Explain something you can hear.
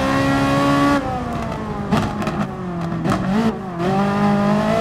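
A race car exhaust pops and crackles.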